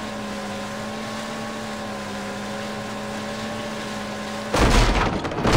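Water splashes against a jet ski hull.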